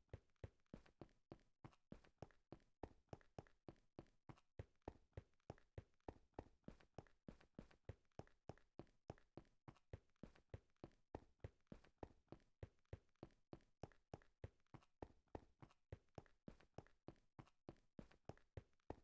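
Quick footsteps crunch steadily on rough stone.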